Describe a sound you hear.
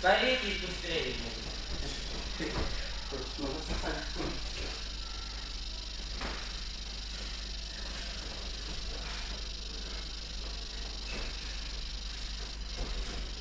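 Bare feet shuffle and thump on a soft mat.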